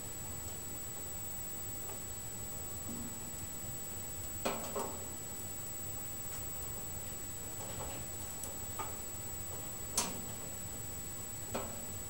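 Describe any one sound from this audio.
A wood fire roars steadily.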